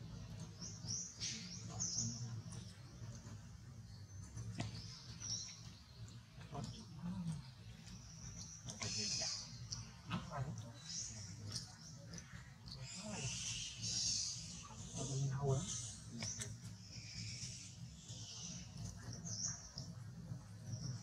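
Dry leaves rustle as a baby monkey shifts on the ground.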